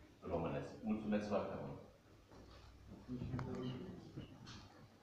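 An elderly man speaks into a microphone over loudspeakers in an echoing room.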